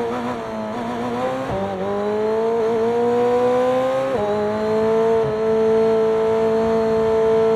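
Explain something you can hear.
A racing car engine revs high and climbs in pitch, dropping sharply at each gear change.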